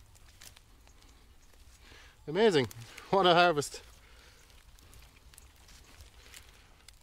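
Hands rustle and crackle through damp soil and tangled roots.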